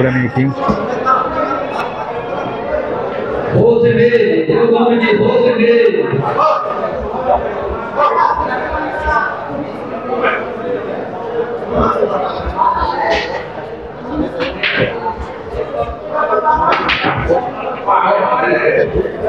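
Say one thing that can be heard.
A crowd of men chatters and murmurs around the room.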